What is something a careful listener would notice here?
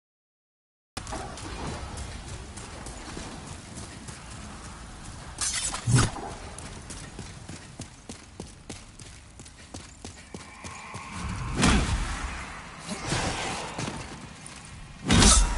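Footsteps scrape and thud on stone as a figure in armour runs.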